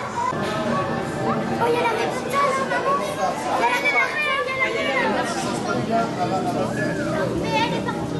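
Children chatter in a large echoing hall.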